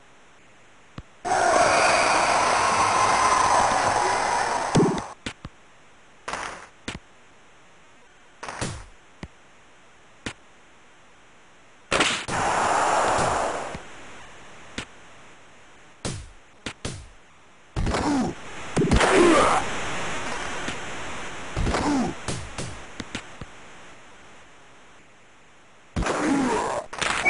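A hockey puck clacks sharply off sticks and boards.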